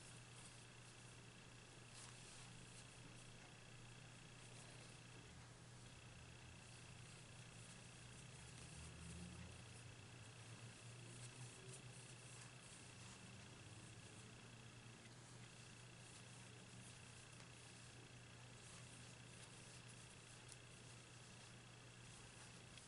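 A crochet hook and yarn rustle softly as stitches are worked.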